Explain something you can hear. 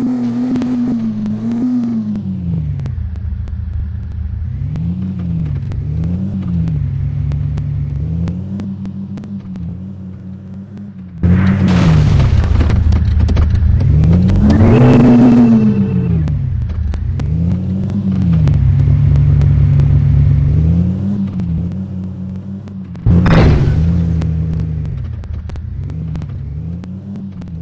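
An off-road SUV engine drones, rising and falling in pitch.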